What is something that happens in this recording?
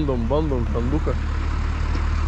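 A man speaks nearby, with animation.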